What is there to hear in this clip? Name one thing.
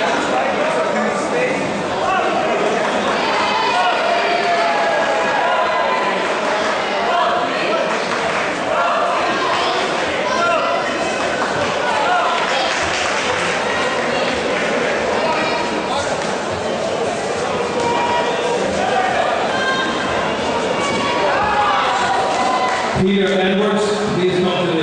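A crowd of men and women shout and cheer all through a large echoing hall.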